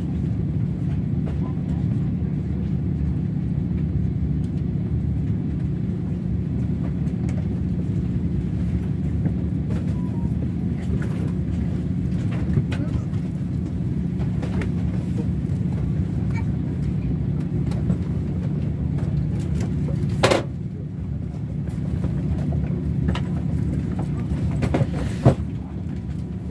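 A train hums and rumbles steadily.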